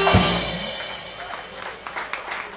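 A jazz band ends a tune with a loud final chord that rings out.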